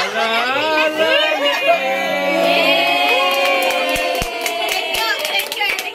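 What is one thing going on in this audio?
A woman laughs loudly nearby.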